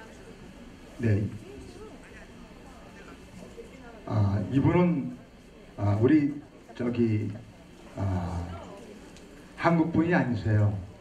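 An elderly man speaks calmly through a microphone over loudspeakers.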